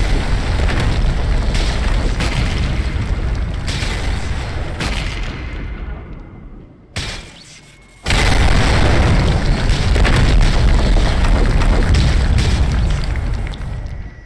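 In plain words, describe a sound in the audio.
Large monsters roar and thrash in a loud, chaotic fight.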